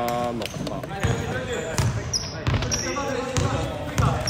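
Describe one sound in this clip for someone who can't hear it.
A basketball bounces with hollow thuds in a large echoing hall.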